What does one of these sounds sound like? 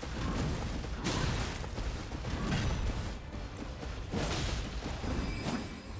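Metal weapons clash and strike with loud impacts.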